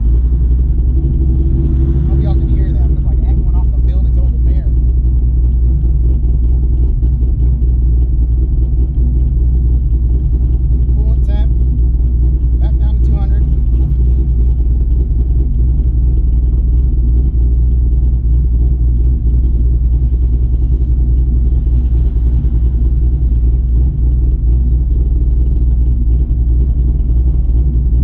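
A car engine rumbles steadily inside a moving car.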